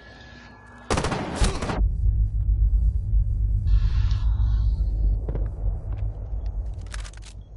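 Rapid gunfire bursts out loudly.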